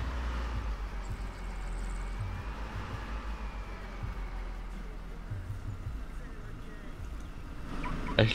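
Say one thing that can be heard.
A car engine hums low as a car drives along a road.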